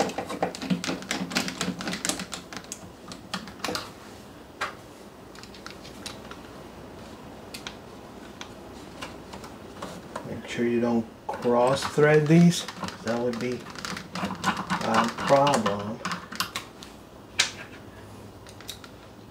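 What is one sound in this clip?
A screwdriver clicks and scrapes against metal screws.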